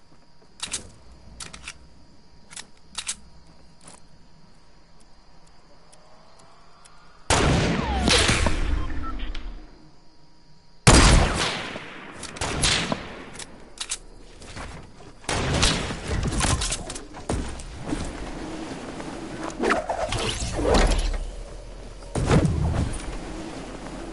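Sharp game clicks and thuds sound in quick bursts.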